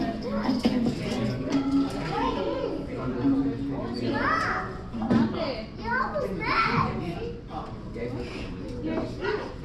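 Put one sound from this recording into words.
A crowd of men and women chatters throughout a large, echoing hall.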